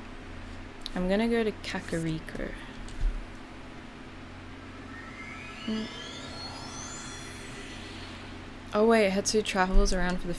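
A young woman talks casually into a close microphone.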